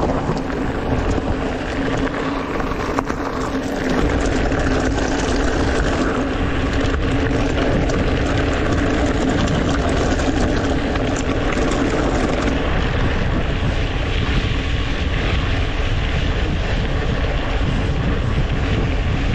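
Bicycle tyres crunch steadily over a gravel road.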